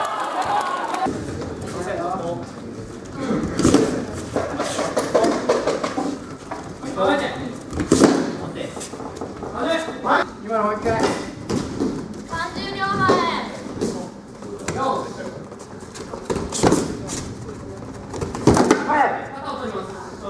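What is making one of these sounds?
Young people shout and call out in a large echoing hall.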